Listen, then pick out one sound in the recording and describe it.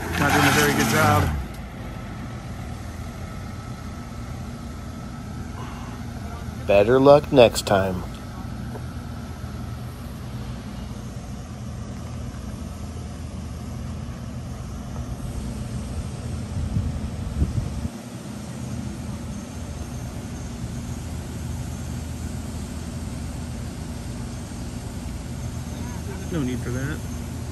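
A pickup truck engine idles and rumbles nearby.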